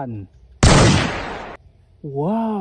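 A toy gun makes a short, loud hissing blast.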